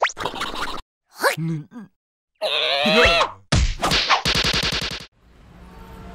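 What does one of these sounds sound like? A man squeals and gibbers in a high, comic voice, close up.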